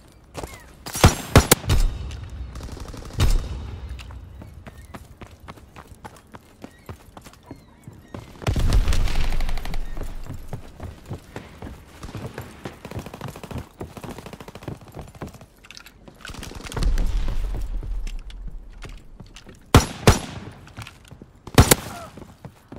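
A rifle fires loud single shots.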